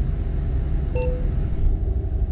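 A short electronic chime sounds once.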